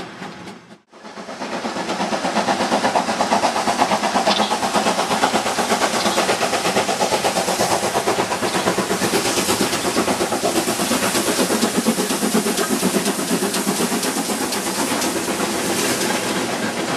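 A steam locomotive puffs hard and fast nearby, its exhaust beats blurring together.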